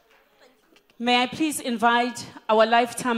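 A woman speaks into a microphone with emotion, heard through loudspeakers in a large room.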